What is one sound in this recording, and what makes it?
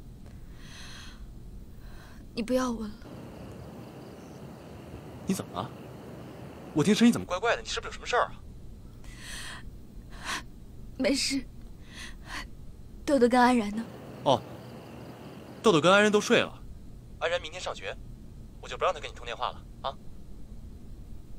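A young woman talks quietly and tearfully on a phone, close by.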